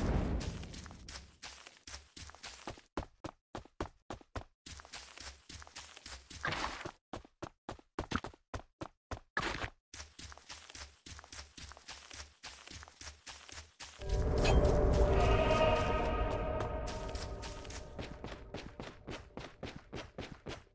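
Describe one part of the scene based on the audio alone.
Quick footsteps run on grass.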